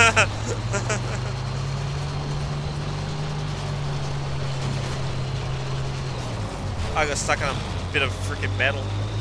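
Tank tracks clank and squeal over rubble.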